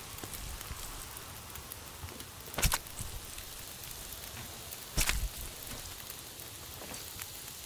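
A knife cuts and tears through a hide.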